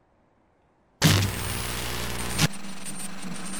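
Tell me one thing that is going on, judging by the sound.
Loud television static hisses and crackles.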